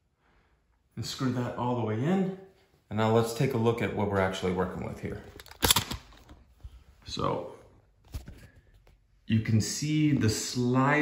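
A middle-aged man talks calmly up close.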